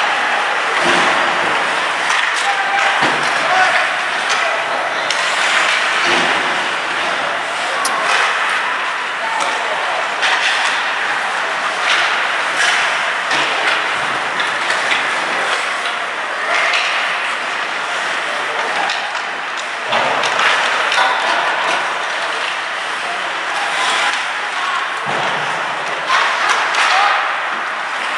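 The sounds echo around a large hard-walled rink.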